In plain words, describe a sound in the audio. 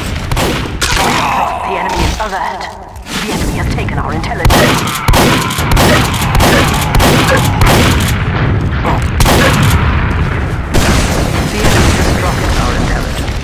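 Rockets explode with heavy booms.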